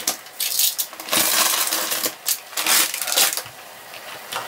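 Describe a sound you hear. A crisp plastic bag rustles and crinkles.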